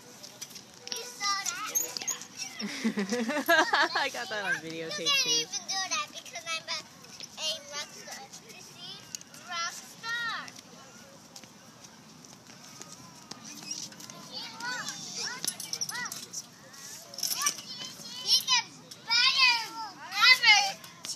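A toddler girl babbles and squeals nearby.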